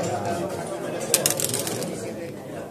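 Dice rattle in a cup and tumble onto a board.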